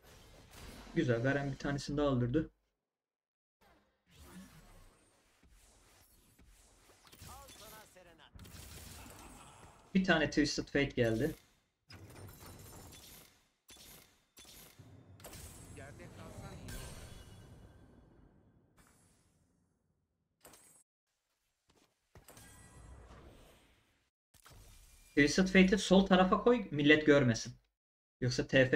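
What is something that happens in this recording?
A young man speaks with animation, close to a microphone.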